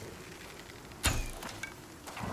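A bowstring snaps as an arrow is loosed.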